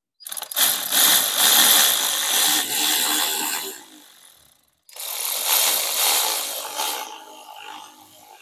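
A cordless power ratchet whirs in short bursts.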